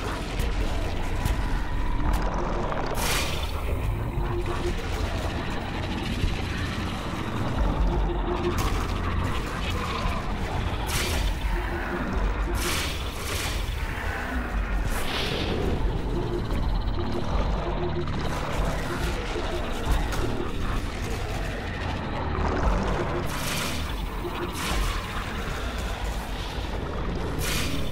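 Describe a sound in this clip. Fireballs whoosh and burst in quick succession.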